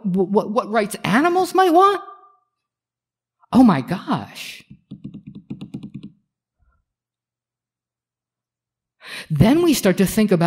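A middle-aged person speaks expressively into a microphone, with pauses.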